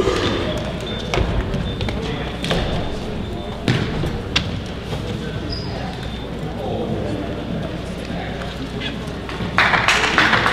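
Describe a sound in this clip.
Footsteps thud softly on a mat in a large echoing hall.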